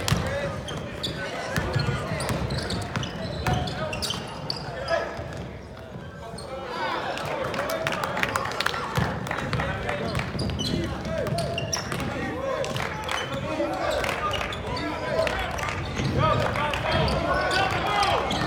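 A crowd of spectators shouts and cheers in a large echoing arena.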